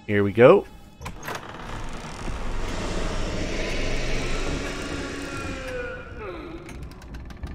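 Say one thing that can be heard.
A wooden attic ladder creaks and slides as it unfolds.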